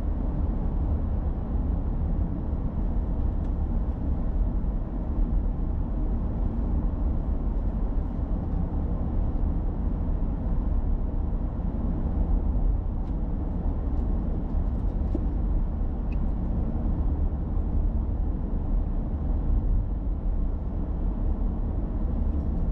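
Tyres roll on asphalt with a low road rumble.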